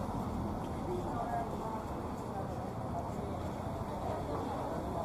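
Cars drive past on a nearby road.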